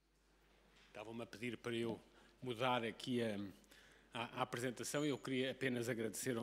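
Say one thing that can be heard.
A middle-aged man speaks calmly into a microphone, as in an address.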